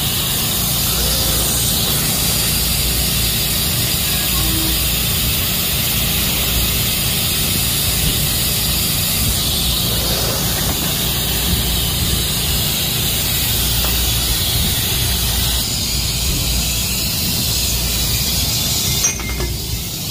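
A laser cutting machine hisses and hums steadily.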